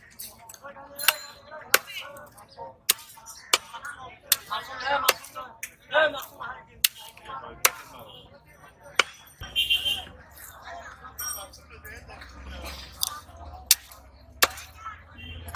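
A heavy cleaver chops through fish onto a wooden block with sharp knocks.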